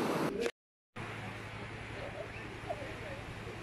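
Distant waves roll gently onto a beach.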